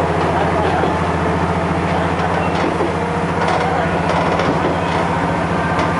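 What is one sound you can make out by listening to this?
A diesel train engine hums steadily from inside the cab.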